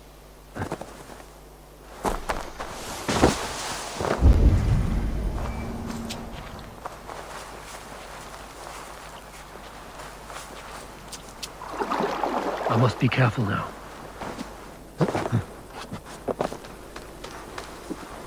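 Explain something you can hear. Footsteps crunch on dry leaves and dirt.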